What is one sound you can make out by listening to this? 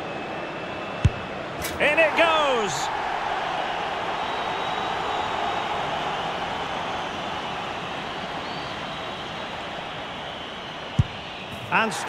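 A football is struck with a sharp thud.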